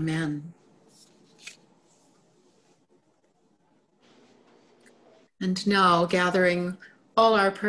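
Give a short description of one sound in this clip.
An older woman speaks calmly and closely into a microphone, with pauses.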